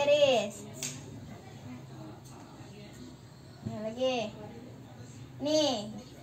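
A young girl speaks in short, high-pitched bursts close by.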